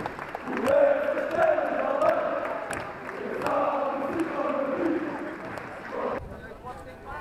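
A large crowd cheers loudly outdoors.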